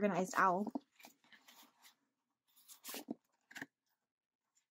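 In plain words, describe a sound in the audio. Paper and plastic sleeves rustle softly as pages are handled.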